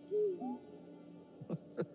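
A small robot chirps and beeps in quick bright tones.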